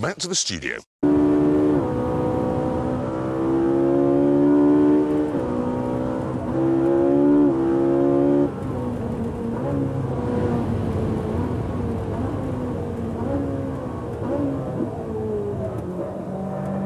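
A sports car engine roars loudly, revving up and dropping as gears shift.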